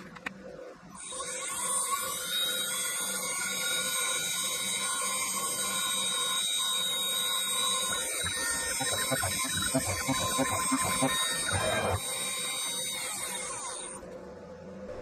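A milling machine whines steadily as it cuts metal.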